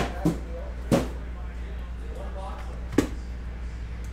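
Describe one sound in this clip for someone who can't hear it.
Hands tap and knock on plastic-wrapped boxes.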